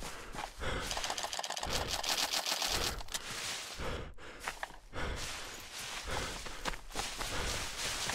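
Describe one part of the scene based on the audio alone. Leafy branches rustle and swish as someone pushes through a bush.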